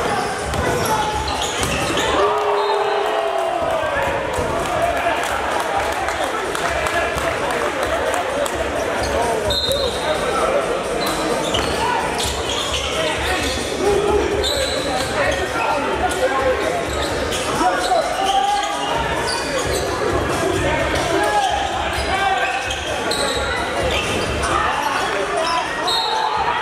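Spectators and players chatter and call out in a large echoing hall.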